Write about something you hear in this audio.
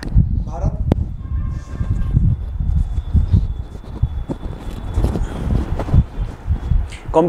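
A clip-on microphone rustles and thumps as it is handled.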